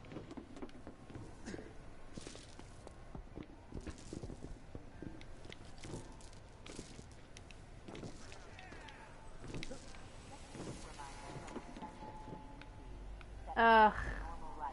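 Footsteps thump as a game character runs and climbs.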